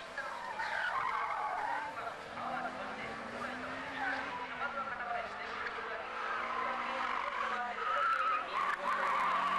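A car engine revs hard and roars nearby.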